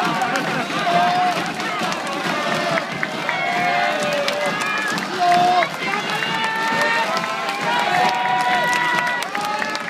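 Fans close by clap their hands.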